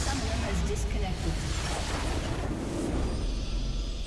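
A heavy explosion booms and rumbles, then slowly fades.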